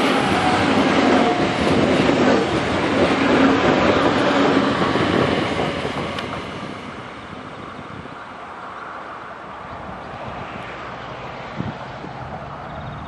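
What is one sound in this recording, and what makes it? An electric train rumbles past close by on the rails, then fades into the distance.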